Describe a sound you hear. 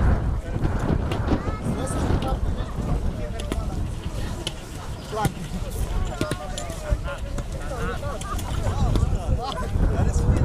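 Men and women chatter nearby in a crowd.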